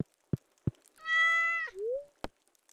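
A bright chiming tone rings as a prompt pops up.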